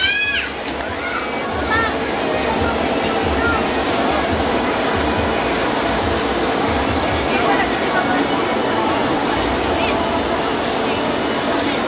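A crowd of children and adults chatters outdoors.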